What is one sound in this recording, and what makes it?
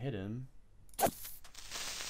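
A sword swings and strikes with a sharp thud.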